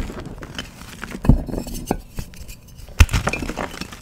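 Hands squeeze and crunch a powdery lump.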